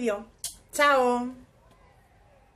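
A young woman speaks cheerfully, close by.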